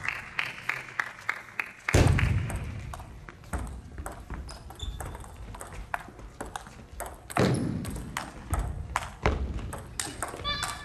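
A ping-pong ball clicks back and forth off paddles and a table in a large echoing hall.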